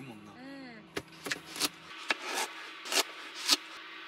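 A knife chops through a radish onto a cutting board.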